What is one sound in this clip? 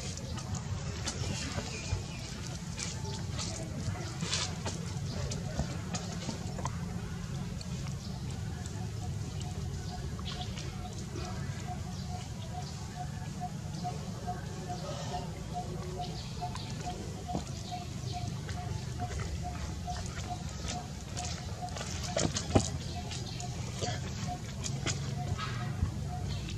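A baby pigtail macaque suckles from a milk bottle.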